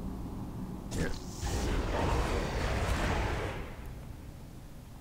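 A magical spell crackles and whooshes.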